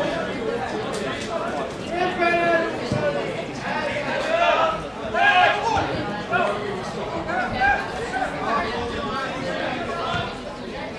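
Men shout to each other across an open field, heard from a distance.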